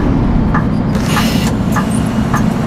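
Bus doors open with a hiss of air.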